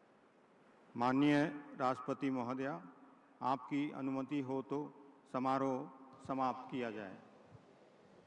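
A man speaks slowly and formally into a microphone, in short phrases.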